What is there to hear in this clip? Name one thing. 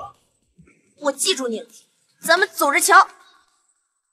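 A young woman speaks sharply up close.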